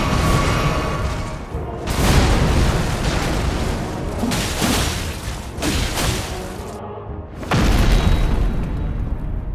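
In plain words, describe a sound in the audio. Heavy blows and crashes ring out as a huge warrior fights.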